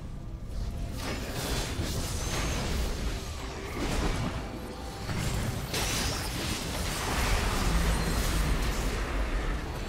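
Magic spells whoosh and crackle in a fast game battle.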